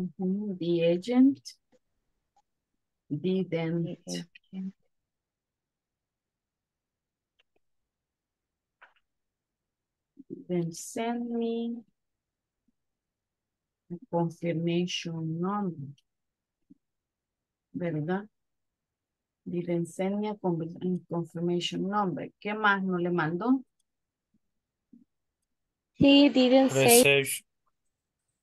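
A woman speaks clearly through an online call, in short bursts with pauses.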